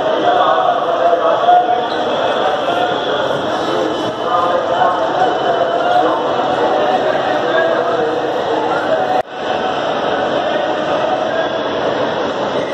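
A crowd of men and women chatter all around in a busy, echoing hall.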